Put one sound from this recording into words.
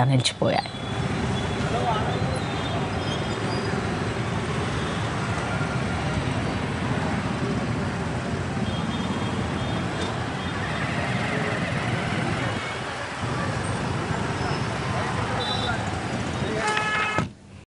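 Motorcycle engines rumble and idle in heavy traffic.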